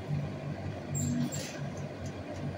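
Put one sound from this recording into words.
A metal gate rattles briefly.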